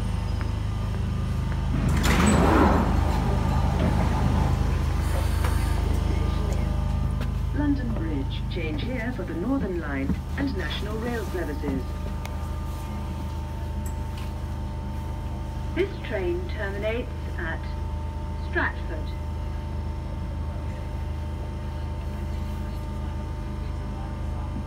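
A subway train rumbles steadily.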